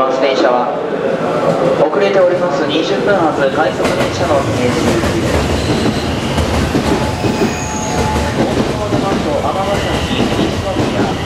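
A train rumbles slowly into a station and rolls past close by.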